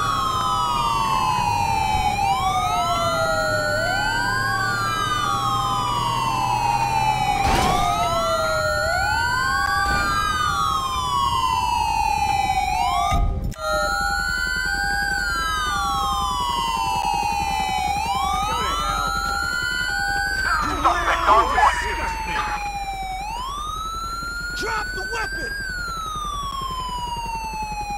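Police sirens wail, rising and falling, throughout.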